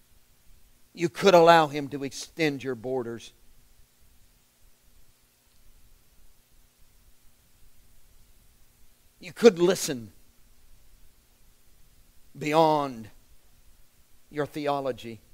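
A middle-aged man speaks in short, slow phrases with long pauses, close by.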